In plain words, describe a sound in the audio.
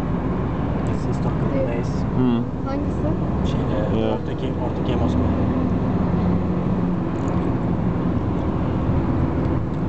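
Tyres roll on a road with a steady rumble.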